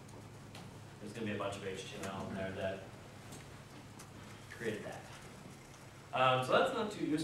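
A man speaks calmly, a little distant, in a large room.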